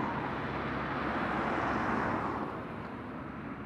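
A car drives past close by and fades.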